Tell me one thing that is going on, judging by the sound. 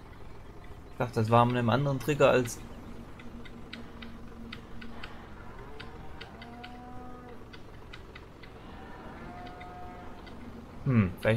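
Cows moo loudly.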